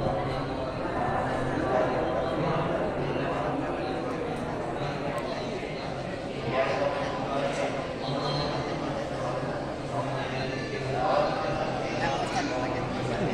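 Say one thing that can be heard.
A large crowd murmurs and chatters steadily in a big echoing hall.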